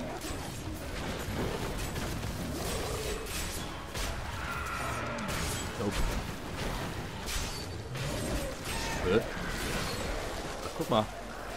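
Spells and weapons crash and burst in a fast, noisy fight.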